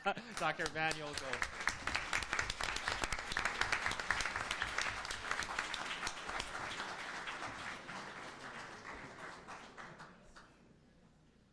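An audience applauds in a large room.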